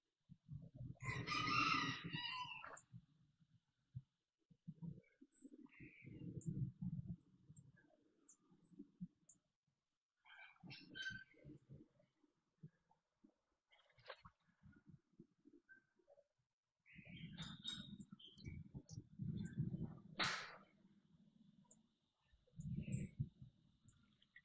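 Small birds chirp in short bursts outdoors.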